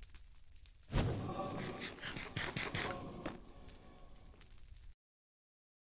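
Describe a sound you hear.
Stone blocks crack and crunch as they are broken.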